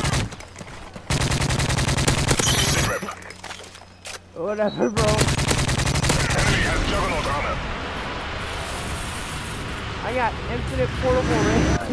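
Rapid gunfire rattles from a rifle.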